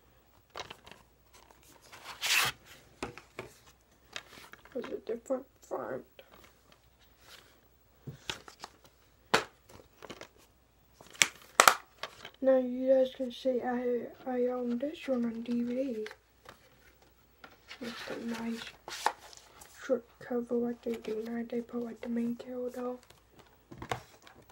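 A plastic case clicks and rattles in a boy's hands.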